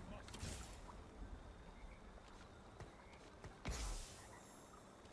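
Game sound effects whoosh and thud as small figures fight.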